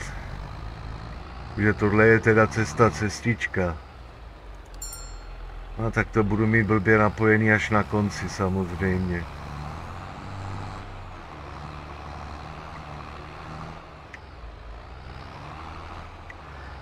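A tractor engine hums steadily at low pitch.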